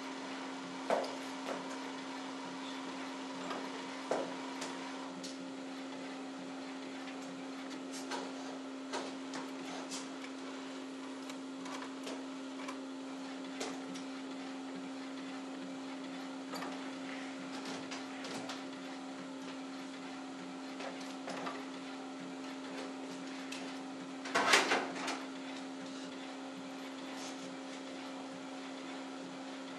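A printer hums steadily as it prints.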